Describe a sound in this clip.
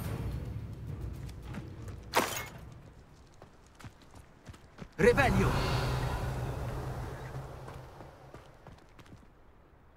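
Footsteps crunch on a dirt path as a character runs.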